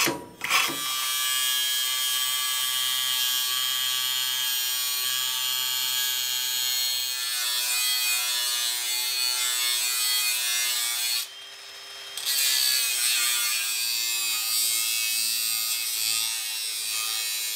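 An angle grinder whines steadily as it cuts through metal.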